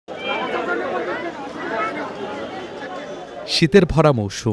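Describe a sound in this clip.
A busy crowd chatters at a market outdoors.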